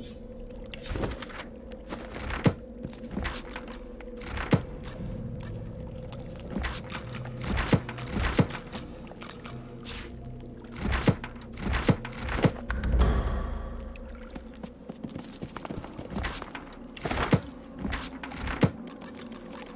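Short interface clicks sound as menus open and close.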